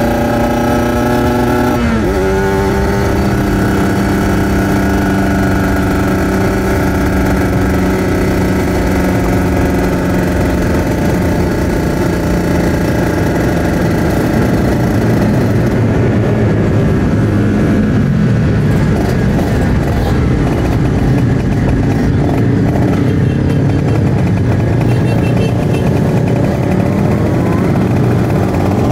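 A motorcycle engine roars at high revs close by, shifting gears as it speeds along.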